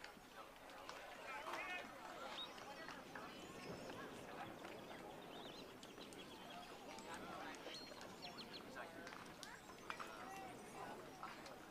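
Children and adults chatter and call out from a distance, outdoors in the open.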